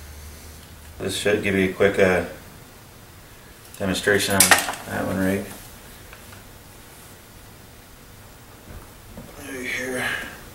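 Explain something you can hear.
A man speaks calmly close by, in short phrases.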